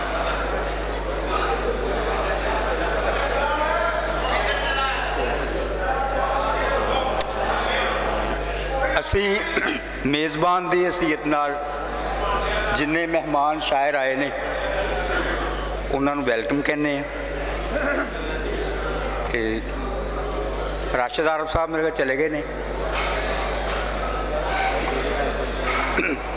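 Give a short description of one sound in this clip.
An elderly man recites through a loudspeaker in a large echoing hall.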